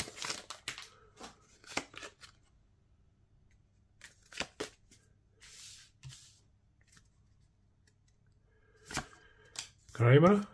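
Playing cards rustle and click as they are shuffled by hand.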